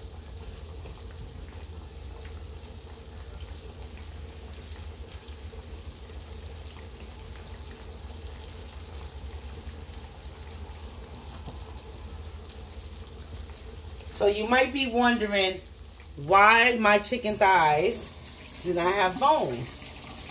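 Hot oil sizzles and crackles steadily in a frying pan.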